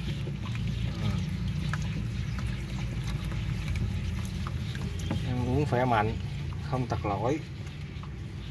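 Small lizards scrabble and scratch against a plastic tub.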